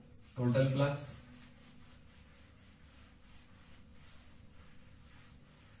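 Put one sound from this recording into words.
A cloth eraser rubs across a whiteboard.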